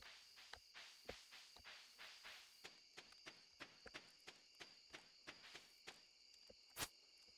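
Quick footsteps patter steadily on soft ground.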